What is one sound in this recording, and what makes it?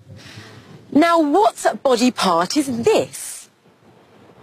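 A young woman speaks clearly and brightly, close to a microphone.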